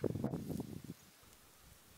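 Roots tear out of soil with a rough rustle.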